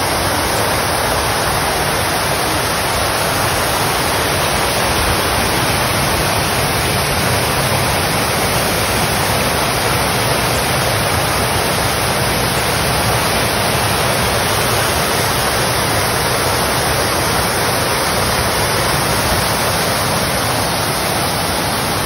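Fountain water splashes and rushes steadily outdoors.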